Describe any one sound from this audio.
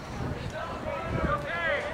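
A bat cracks against a baseball outdoors.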